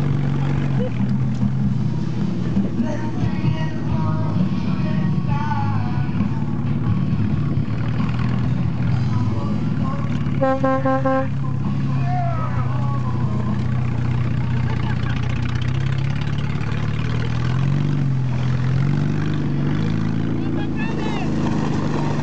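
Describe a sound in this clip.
Men and women in a crowd shout and cheer outdoors.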